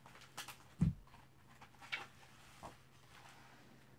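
A page of a book rustles as it turns.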